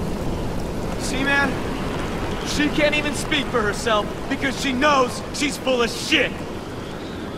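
A woman speaks tensely and threateningly.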